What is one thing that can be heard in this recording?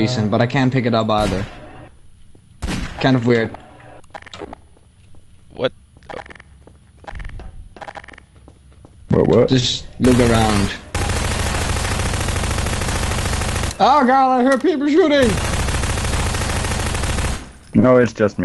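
Gunshots ring out in short, rapid bursts.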